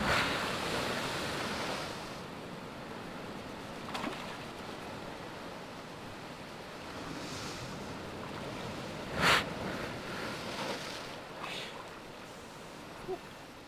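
Waves crash and wash over rocks close by.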